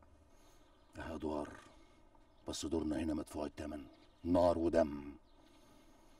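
A second man answers firmly, close by.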